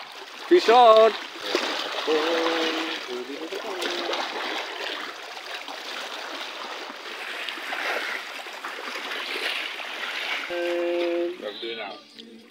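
Sea water splashes and laps against a boat.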